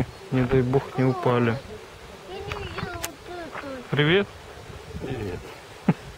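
An older man talks calmly close by, outdoors.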